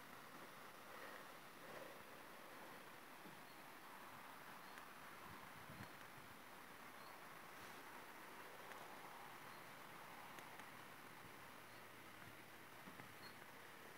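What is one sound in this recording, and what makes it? A light breeze rustles through leaves outdoors.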